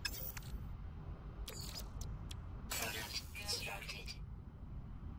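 Short electronic interface blips sound as menu items are selected.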